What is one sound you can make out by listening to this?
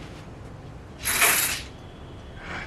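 A curtain swishes as it is pulled.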